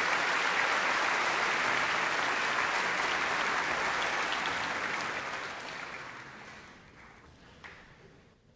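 An audience applauds in a large echoing hall, then the applause fades.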